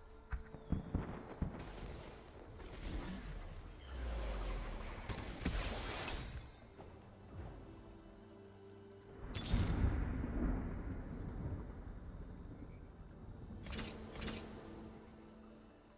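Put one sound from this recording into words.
Game combat effects whoosh, clash and burst in quick flurries.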